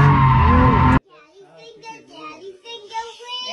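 A small child sings softly.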